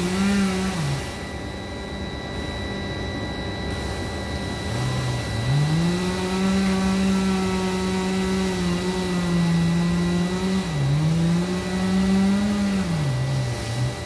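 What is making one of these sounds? A chainsaw engine idles and revs up and down close by.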